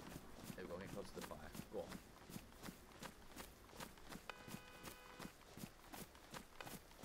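Footsteps swish through grass at a steady pace.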